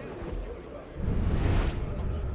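A deep whoosh swells loudly.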